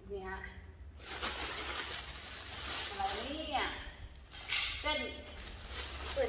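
Plastic wrapping crinkles.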